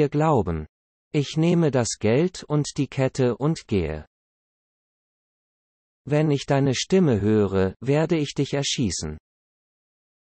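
A man speaks in a low, threatening voice.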